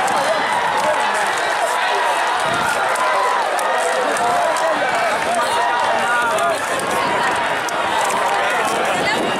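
A large crowd shouts and cheers excitedly outdoors.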